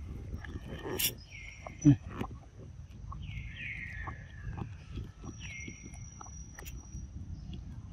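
A young monkey slurps and sucks noisily from a bottle.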